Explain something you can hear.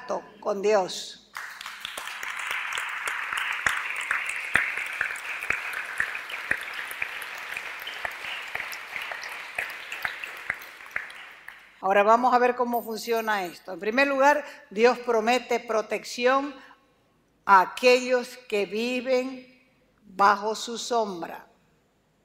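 A woman speaks calmly through a microphone, heard over loudspeakers.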